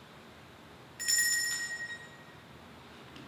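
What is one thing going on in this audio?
A small cluster of bells rings brightly and fades.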